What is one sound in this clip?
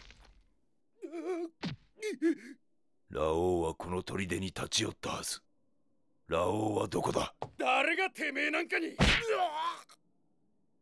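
A man speaks in a strained, angry voice, up close.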